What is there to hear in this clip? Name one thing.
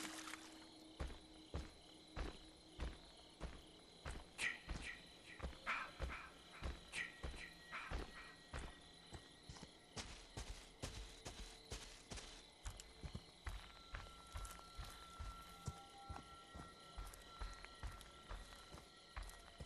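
Heavy footsteps crunch slowly over dry leaves.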